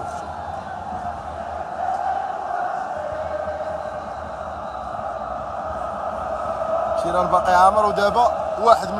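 A huge stadium crowd chants and roars throughout.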